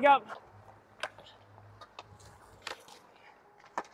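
Hockey sticks smack pucks with sharp cracks.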